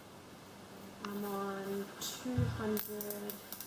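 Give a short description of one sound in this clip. A young woman talks calmly to a nearby microphone.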